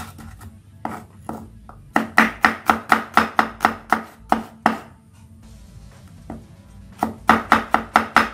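A knife chops rapidly on a wooden board.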